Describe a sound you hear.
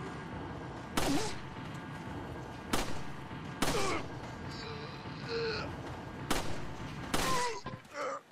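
Pistol shots ring out one at a time, sharp and loud.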